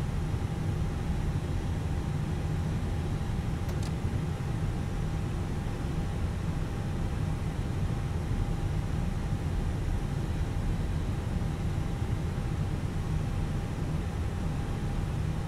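Jet engines hum and rumble steadily as an airliner taxis.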